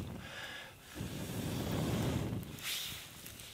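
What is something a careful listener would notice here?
A man blows softly on a small campfire.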